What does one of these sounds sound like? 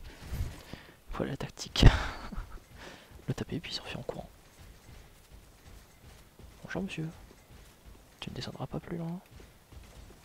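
Swords clash and strike armour in short bursts.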